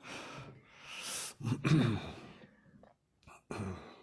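An elderly woman laughs.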